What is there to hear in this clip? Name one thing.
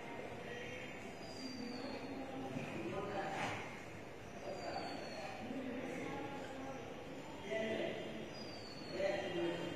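A marker squeaks across a whiteboard.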